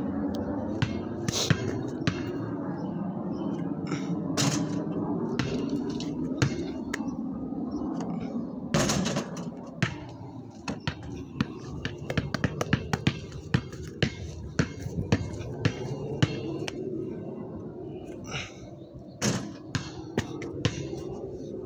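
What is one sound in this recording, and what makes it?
A basketball bounces on pavement with sharp thuds.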